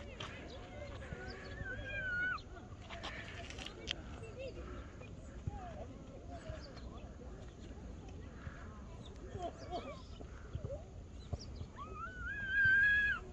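A toddler babbles in a high voice outdoors.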